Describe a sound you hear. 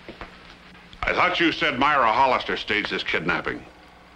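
A man speaks loudly and with agitation close by.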